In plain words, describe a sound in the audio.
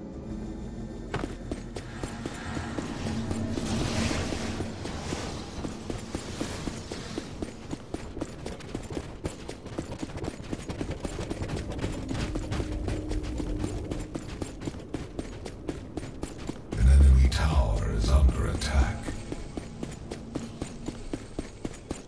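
Heavy footsteps thud quickly and steadily as a runner moves along.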